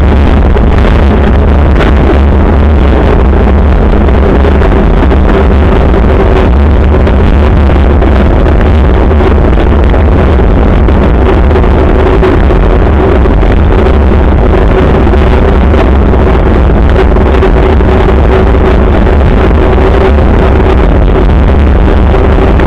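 Wind buffets loudly against a moving vehicle's microphone.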